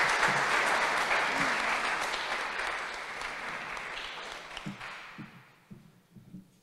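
An audience applauds loudly, then the applause fades away.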